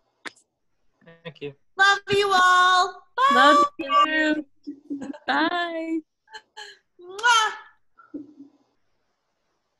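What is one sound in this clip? Young women talk and laugh with animation over an online call.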